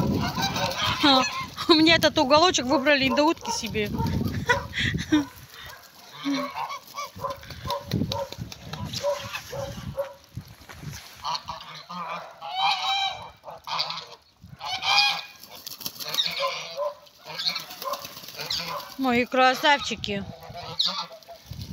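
Ducks and geese quack and honk loudly nearby.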